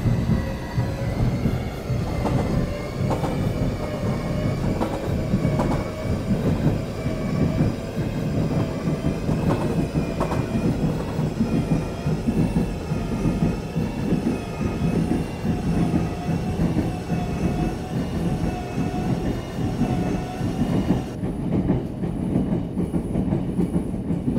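A train rumbles steadily along the tracks from inside a carriage.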